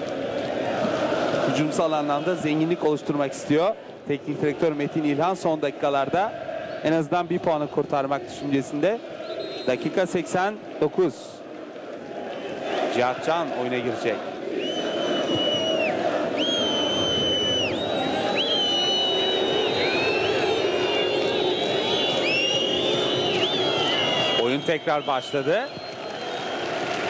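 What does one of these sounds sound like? A large stadium crowd roars steadily in the open air.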